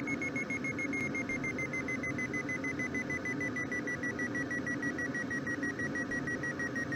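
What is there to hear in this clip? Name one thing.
Air rushes steadily past a glider's cockpit.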